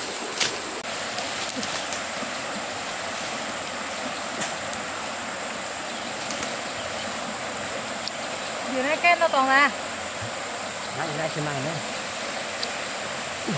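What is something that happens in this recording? A shallow stream trickles steadily nearby.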